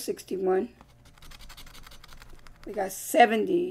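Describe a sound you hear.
A coin scratches across a card.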